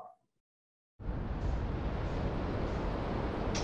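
A spacecraft engine rumbles steadily.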